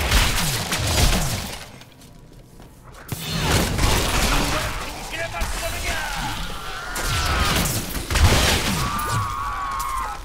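Fiery spells crackle and burst in a fight.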